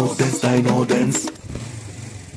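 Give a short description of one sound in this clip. Young children sing together with energy.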